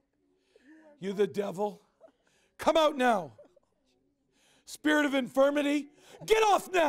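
A man prays aloud nearby in loud, fervent bursts.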